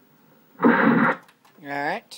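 A television plays a loud burst of sound.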